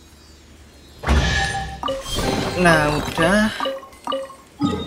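A treasure chest opens with a bright chime.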